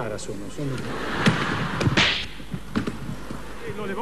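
A body thuds onto a stage floor.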